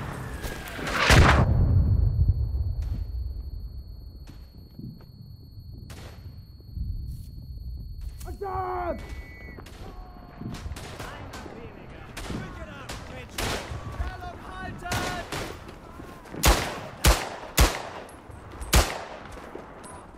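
A pistol fires sharp, loud shots.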